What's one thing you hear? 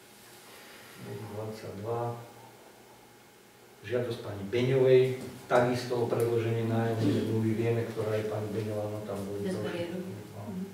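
A man speaks calmly in a quiet room.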